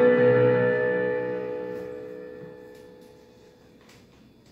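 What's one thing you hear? An electric piano chord rings out and slowly fades away.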